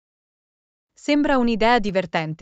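A woman speaks brightly, close to a microphone.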